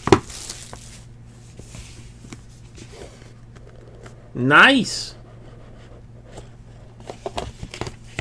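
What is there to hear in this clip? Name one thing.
A cardboard box lid slides open.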